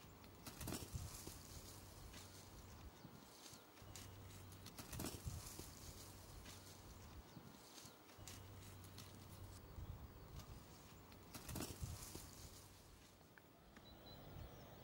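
A rake scrapes and thuds against the soil.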